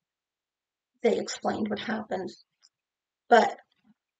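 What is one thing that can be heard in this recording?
A woman speaks calmly and close to the microphone.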